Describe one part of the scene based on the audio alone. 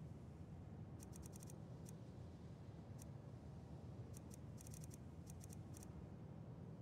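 Soft, high clicks tick in quick bursts.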